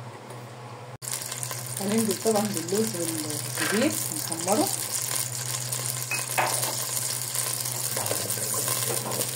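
Hot oil sizzles loudly in a pan.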